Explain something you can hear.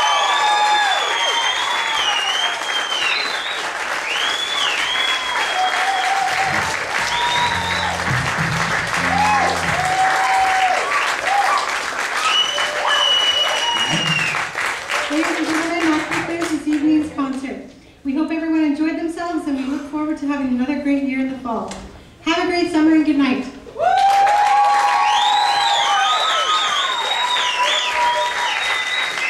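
A jazz band plays horns, guitar and drums on stage.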